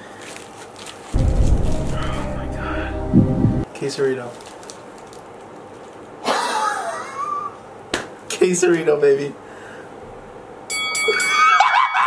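A wrapper crinkles in a man's hands.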